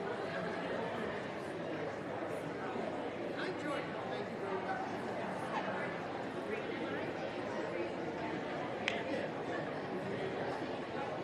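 A crowd murmurs and chatters steadily in a large echoing hall.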